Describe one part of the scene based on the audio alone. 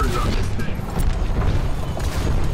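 A fiery blast roars.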